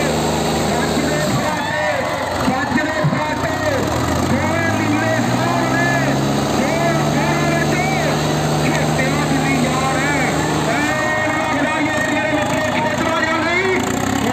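Two tractor engines roar and strain under heavy load.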